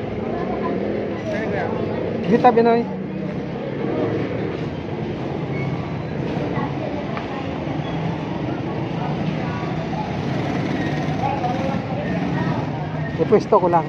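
People chatter in a busy open-air market.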